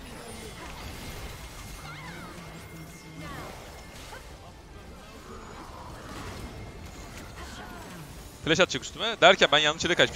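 Magic attacks whoosh and crackle in a game battle.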